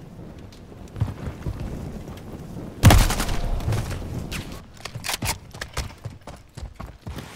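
Gunshots crack in quick bursts with a loud blast.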